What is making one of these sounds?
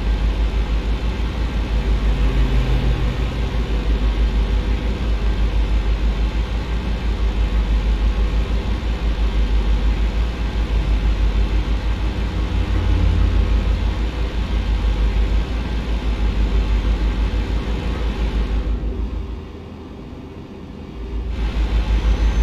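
Tyres roll and hum on a road.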